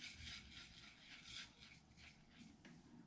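Dry crumbs pour softly from a bowl onto a plate.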